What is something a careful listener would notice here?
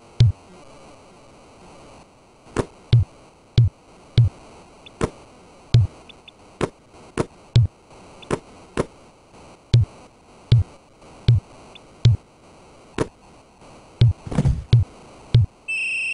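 A basketball bounces on a hard court in steady, regular thumps.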